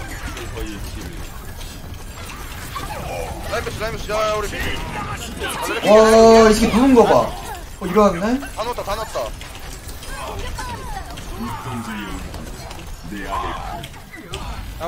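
A young man talks excitedly into a close microphone, at times shouting.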